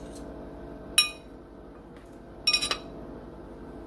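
A fork and knife clink and scrape against a plate.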